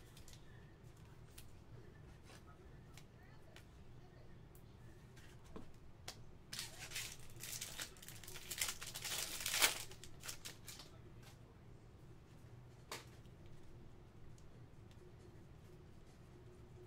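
Trading cards click and slide against each other as they are shuffled.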